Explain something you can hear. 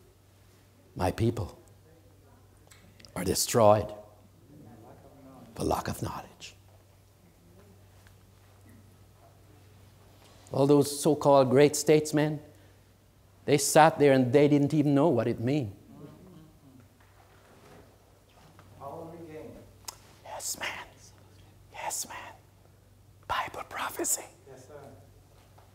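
An elderly man speaks with pauses through a microphone in a room with some echo.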